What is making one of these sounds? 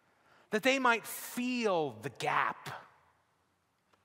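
A man speaks with animation through a microphone in a reverberant hall.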